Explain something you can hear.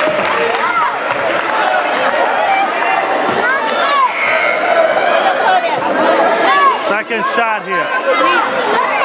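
A crowd of people talks and calls out in an echoing gym.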